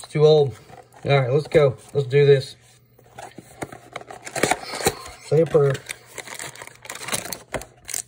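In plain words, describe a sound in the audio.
A cardboard box is pulled open.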